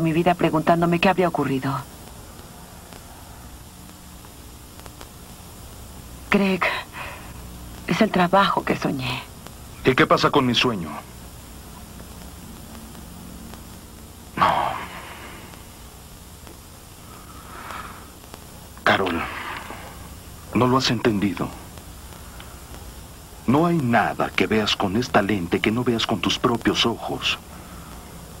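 A woman speaks anxiously nearby.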